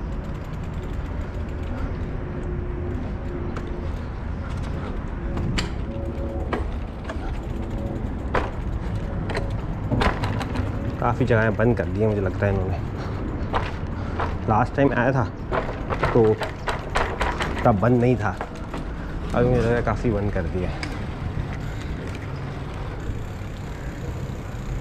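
Wind rumbles steadily across a moving scooter.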